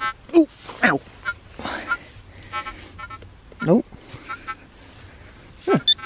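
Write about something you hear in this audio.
A small trowel scrapes and chops at soil.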